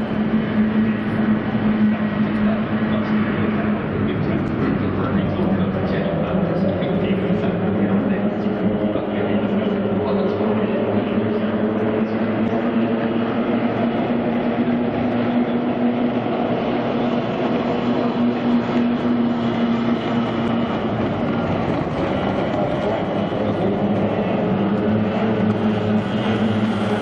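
Racing boat engines drone loudly and steadily.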